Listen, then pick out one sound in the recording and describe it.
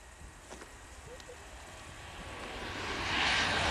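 A high-speed train approaches, its rushing hiss growing louder.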